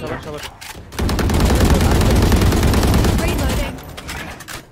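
A rifle fires in a rapid burst.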